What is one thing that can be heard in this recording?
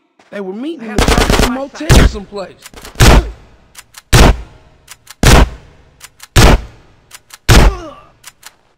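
A shotgun fires loud blasts again and again, each shot echoing briefly.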